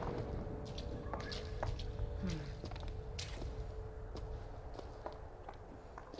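Footsteps tread on a stone floor at a steady walking pace.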